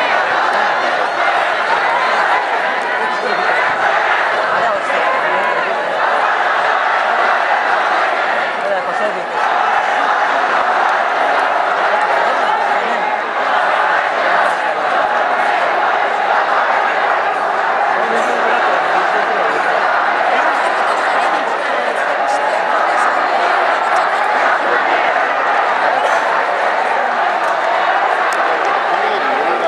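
A stadium crowd murmurs and cheers steadily outdoors.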